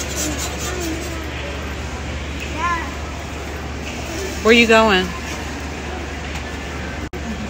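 A spatula scrapes and spreads batter across a hot griddle.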